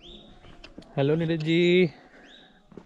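A man speaks outdoors.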